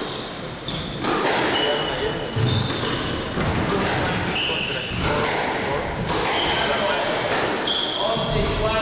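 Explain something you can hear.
A squash ball smacks against the walls with sharp thwacks that echo around a hard room.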